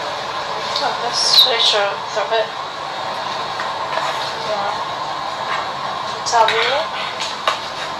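A young woman speaks nearby in short bursts.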